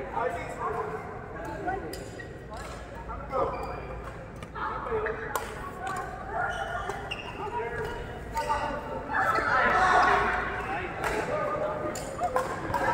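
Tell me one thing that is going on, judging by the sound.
Adult players chatter and call out across the hall.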